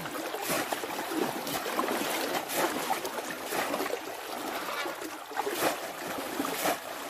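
Water splashes as a net is scooped through it.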